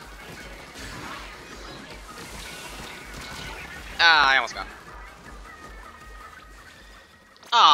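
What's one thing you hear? Video game ink blasters spray and splatter.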